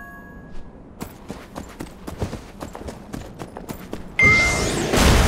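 Footsteps patter quickly on sand.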